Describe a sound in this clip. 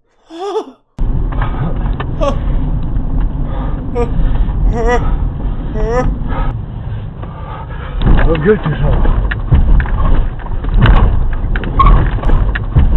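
A man talks loudly and with animation inside a car.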